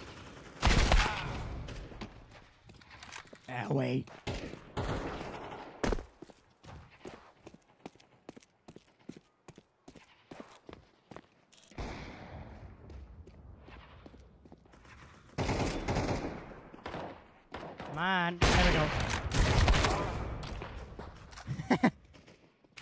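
Loud gunshots ring out with a short echo.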